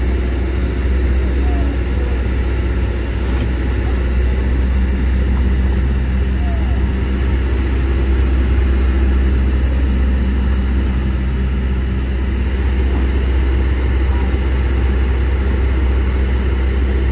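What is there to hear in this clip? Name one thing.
Tyres crunch slowly over a rough dirt road.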